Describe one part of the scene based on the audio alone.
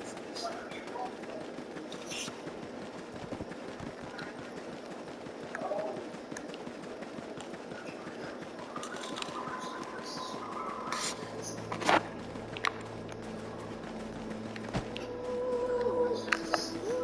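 Footsteps run steadily over ground and grass.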